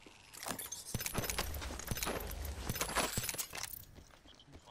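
Gear rattles and clicks as items are picked up in a game.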